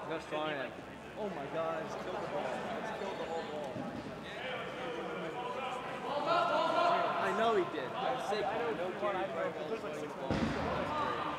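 Young men talk casually close by in a large echoing hall.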